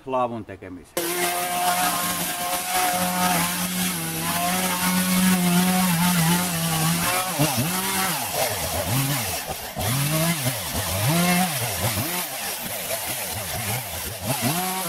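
A chainsaw engine runs loudly and revs up and down outdoors.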